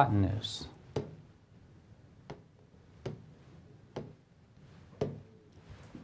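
A pen taps and squeaks against a board.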